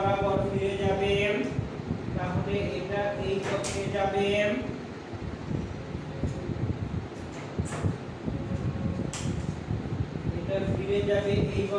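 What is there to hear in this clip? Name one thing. A man speaks calmly close by, as if lecturing.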